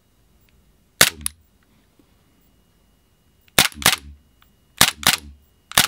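A pistol's metal parts click sharply, several times.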